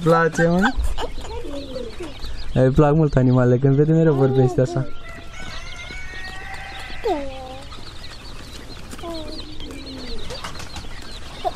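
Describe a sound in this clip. A baby babbles and coos up close.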